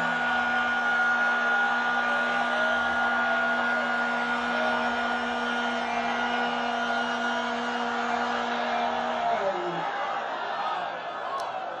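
A large crowd of women cheers and shouts loudly in a big echoing space.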